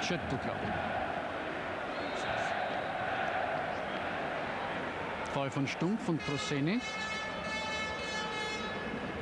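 A large stadium crowd roars and chants steadily in the distance.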